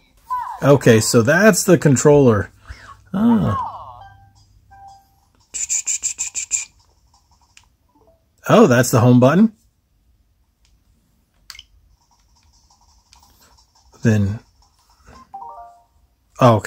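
A video game plays short jingles and sound effects through a small speaker.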